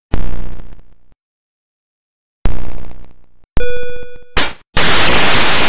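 Chiptune sound effects bleep and crash from a video game.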